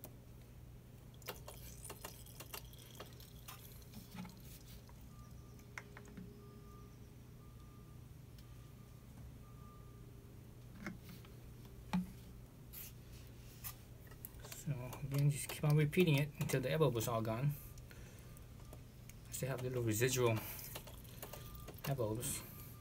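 A wrench clicks and clanks against metal.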